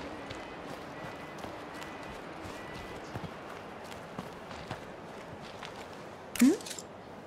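Footsteps crunch over dirt.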